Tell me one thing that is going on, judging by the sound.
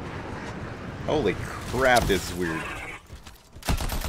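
A beast snarls and growls.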